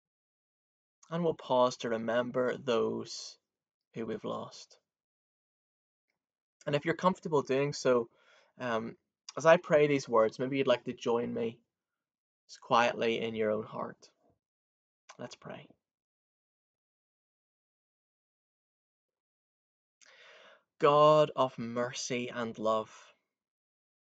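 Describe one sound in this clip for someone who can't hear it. A young man talks calmly and close to a microphone, with pauses.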